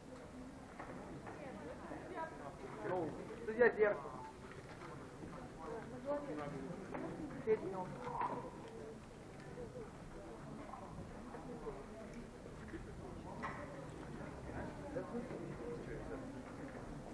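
Adults talk quietly in a large echoing hall.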